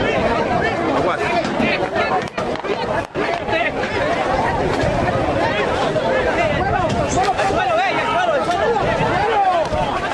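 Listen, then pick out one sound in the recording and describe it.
A crowd of men and women shout and scream close by in panic.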